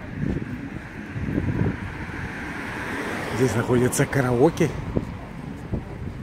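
Footsteps walk along pavement outdoors.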